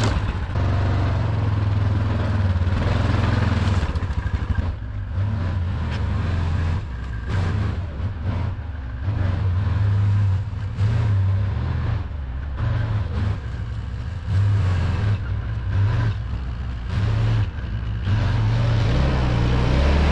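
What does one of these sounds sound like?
A quad bike engine rumbles and revs up and down close by.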